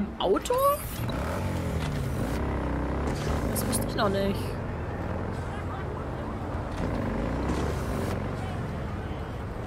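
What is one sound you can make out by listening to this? A motorcycle engine runs and revs.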